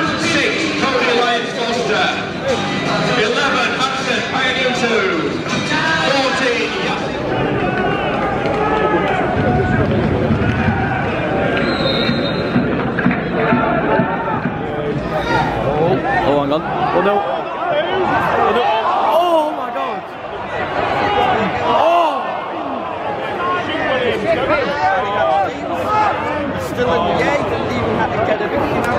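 A crowd chatters and calls out around an outdoor football pitch.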